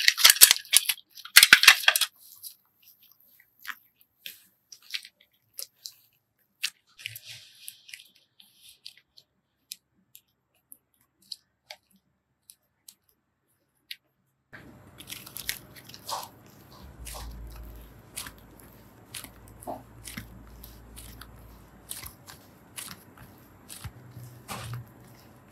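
Soft play dough squishes and squelches between fingers, close up.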